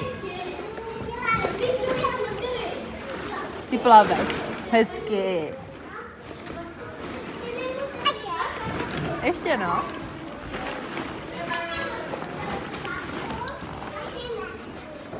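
Plastic balls rustle and clatter as a small child wades through them.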